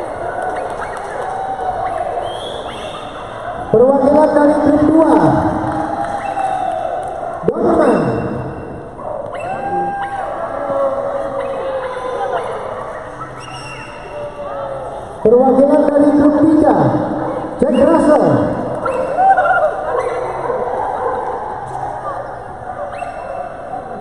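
Men and women shout and call out loudly in a large echoing hall.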